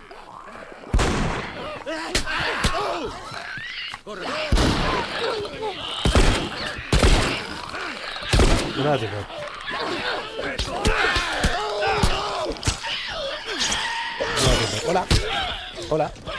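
Creatures shriek and growl.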